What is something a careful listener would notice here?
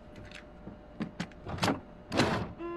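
A switch clicks as a button is pressed.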